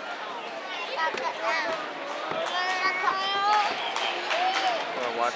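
A group of young girls claps their hands.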